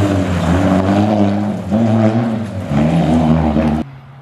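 Gravel sprays from under a rally car's tyres.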